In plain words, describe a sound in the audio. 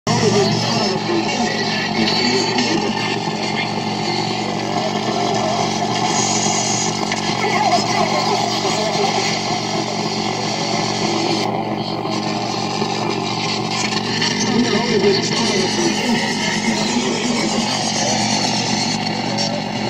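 Droning, buzzing synthesizer tones play and slowly shift in pitch and texture.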